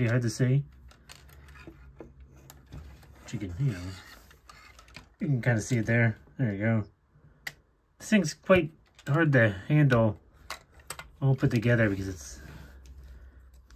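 Plastic toy bricks click and rattle as hands handle them.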